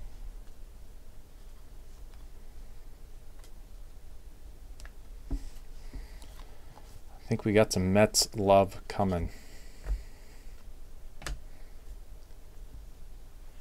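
Trading cards softly rustle and flick as they are shuffled by hand.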